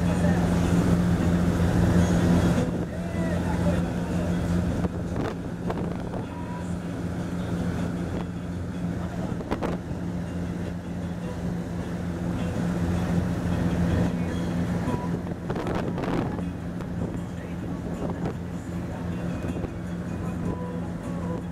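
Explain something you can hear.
A boat engine hums steadily throughout.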